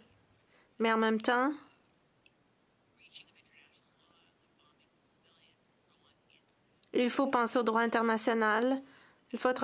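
A middle-aged woman speaks with animation over an online call, pausing between phrases.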